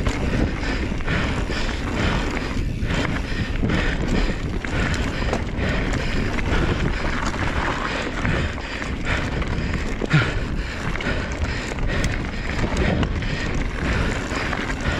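A bike rattles and clatters over bumps.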